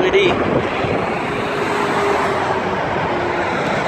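Trucks drive past on a highway with a steady rushing of tyres.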